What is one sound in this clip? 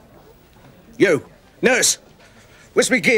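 An elderly man speaks in short, tense bursts close by.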